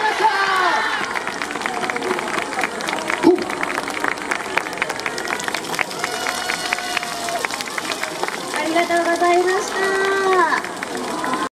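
A large group of young men and women shout and chant together outdoors.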